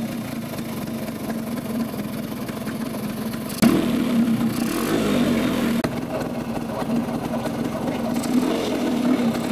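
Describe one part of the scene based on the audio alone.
A scooter engine idles with a steady low hum.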